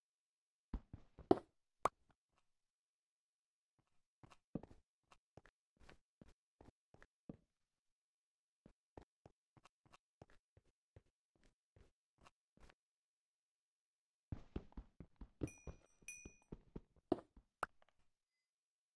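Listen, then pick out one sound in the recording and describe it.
A pickaxe chips and cracks against stone.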